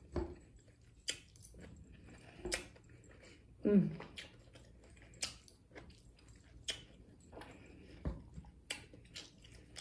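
A woman chews crunchy food close up, with wet crisp bites.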